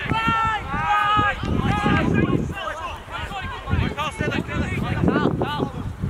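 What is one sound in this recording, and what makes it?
Young men shout to each other outdoors on an open field.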